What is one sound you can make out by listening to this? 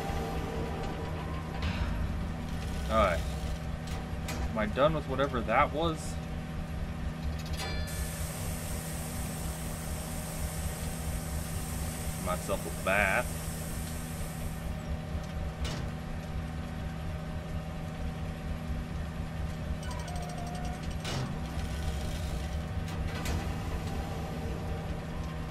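Machinery hums steadily and low.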